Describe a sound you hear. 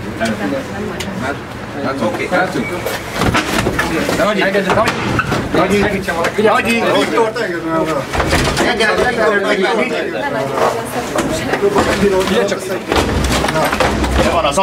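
Several men talk loudly and over one another at close range.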